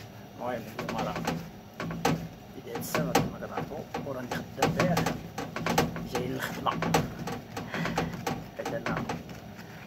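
Dough thumps and slaps on a surface.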